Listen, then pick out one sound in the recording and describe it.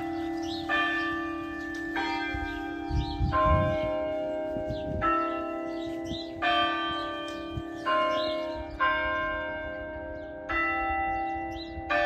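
Church bells ring out loudly, each stroke sounding and slowly fading.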